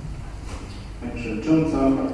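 A middle-aged man begins speaking into a microphone.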